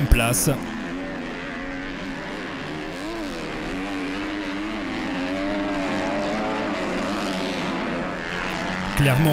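Dirt bike engines rev and whine, rising and falling in pitch.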